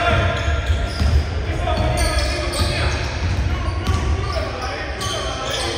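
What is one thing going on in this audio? A basketball bounces with dull thumps on the court.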